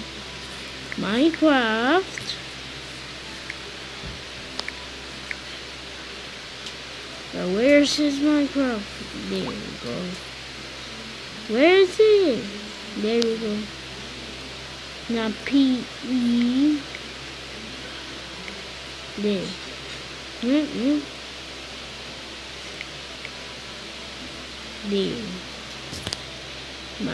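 Fingers tap softly on a touchscreen keyboard.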